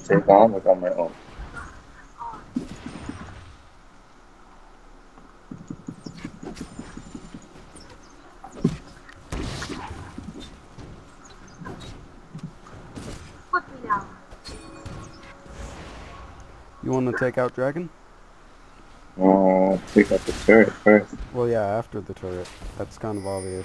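Spell effects whoosh and crackle as fighters clash.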